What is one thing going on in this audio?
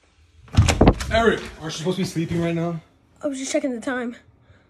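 A young boy speaks up close.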